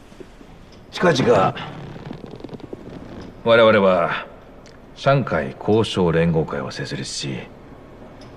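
A middle-aged man speaks calmly and deliberately, close by.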